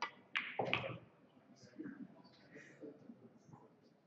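A cue stick strikes a pool ball.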